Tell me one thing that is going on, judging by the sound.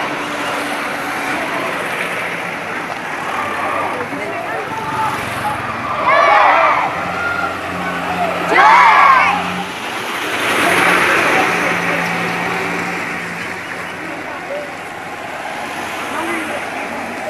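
A crowd murmurs along the roadside.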